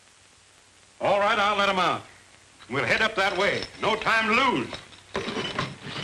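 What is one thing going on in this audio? A man speaks loudly and urgently.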